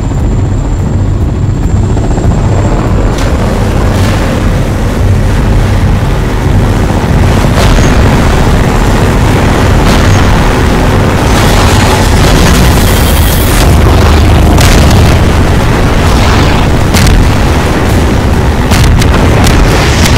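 An airboat engine roars steadily.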